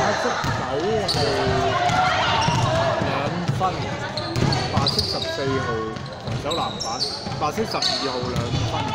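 Young women shout to each other across an echoing gym.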